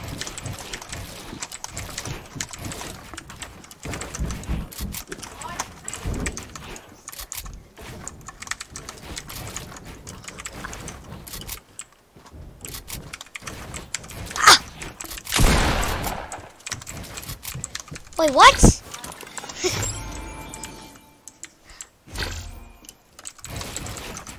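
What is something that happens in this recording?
Quick clicks and thuds of building pieces snapping into place in a video game.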